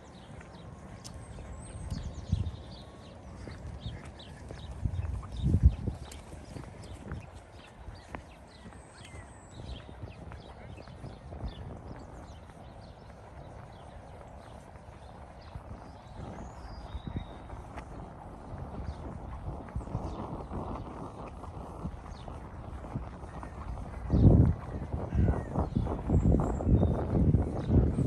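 Footsteps tread steadily on a paved path.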